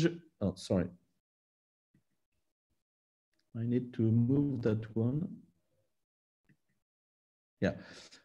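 A man speaks calmly through an online call, in short phrases with pauses.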